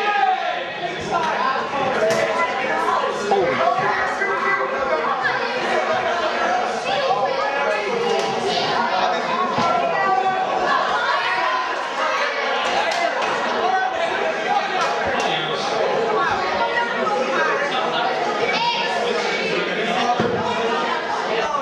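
A crowd chatters and shouts in an echoing hall.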